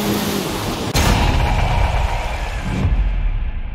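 Tyres skid and spray on a wet road.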